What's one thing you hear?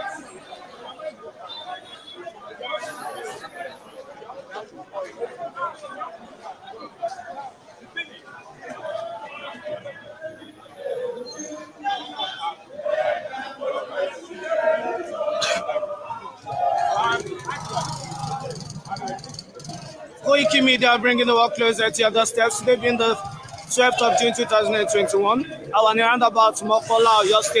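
A crowd of men talk and shout outdoors.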